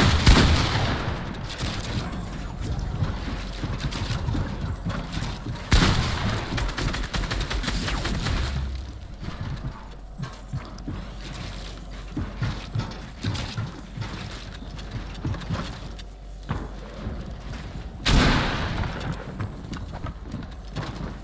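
Building pieces snap into place with quick knocking clicks.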